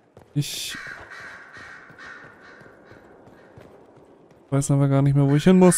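Footsteps run quickly over a stone floor.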